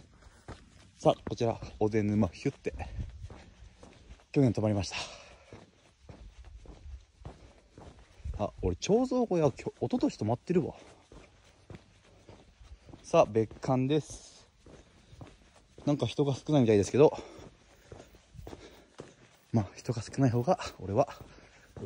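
A young man talks with animation close to the microphone, in short bursts with pauses.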